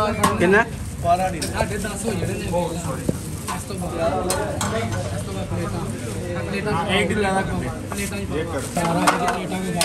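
Metal tongs clink and scrape against a metal tray.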